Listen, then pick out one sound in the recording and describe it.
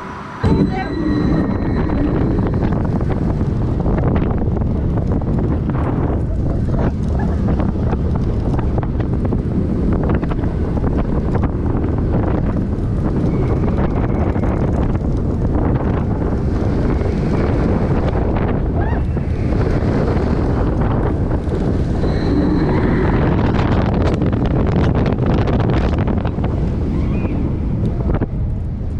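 Wind roars loudly past a fast-moving roller coaster.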